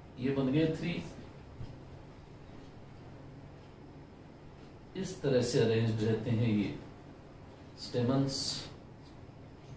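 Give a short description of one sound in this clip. A middle-aged man speaks calmly in short phrases, close by.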